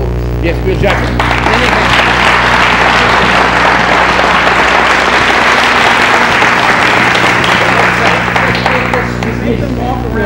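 A crowd cheers and applauds loudly, then dies down.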